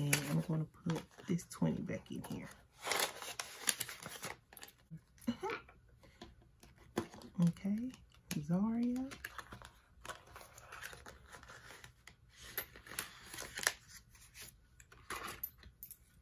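A paper envelope rustles as it is opened and filled.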